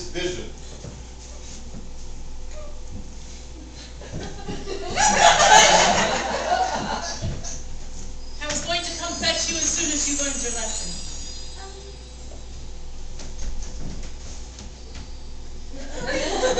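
A woman speaks in a theatrical voice.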